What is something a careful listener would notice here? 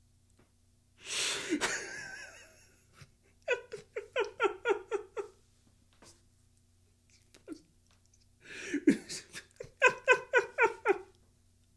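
A middle-aged man laughs hard in bursts, close to a microphone.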